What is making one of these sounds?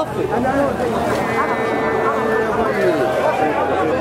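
A man cries out in distress nearby.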